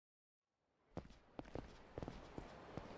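Footsteps tap on a hard pavement.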